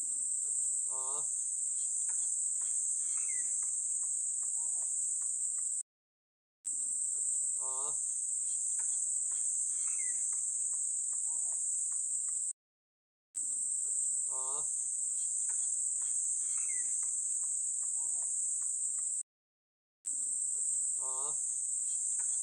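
A goat bleats with a wavering cry.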